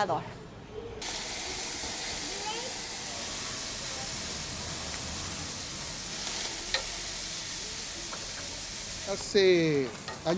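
Meat sizzles and fire crackles on a grill.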